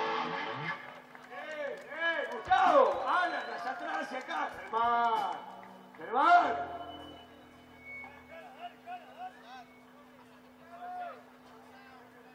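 A man speaks with animation into a microphone over loudspeakers.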